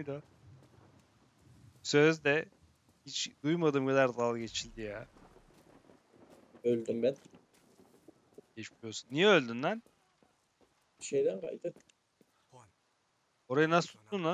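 A young man talks with animation into a close microphone, pausing now and then.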